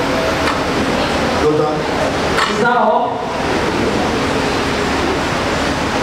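A man preaches with animation through a microphone, echoing in a large hall.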